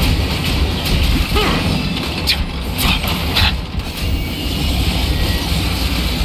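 Fiery magic attacks burst and crackle in a battle.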